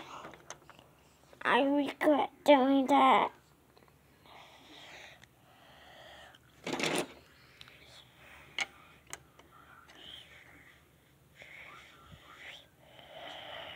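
Plastic toy bricks click and clatter on a table.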